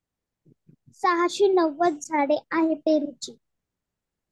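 A child speaks briefly through an online call.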